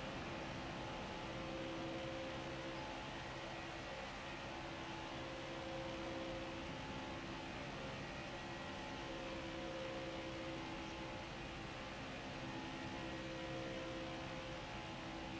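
Tyres hum on the track.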